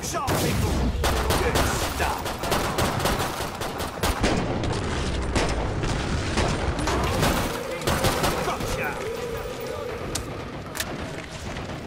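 Gunshots crack rapidly, one after another.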